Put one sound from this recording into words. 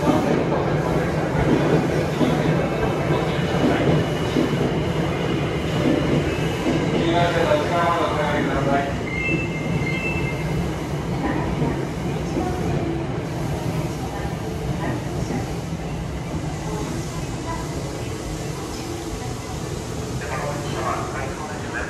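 A train rumbles along a platform, slowly fading as it pulls away.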